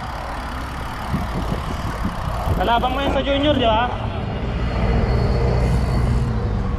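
A bus engine hums nearby.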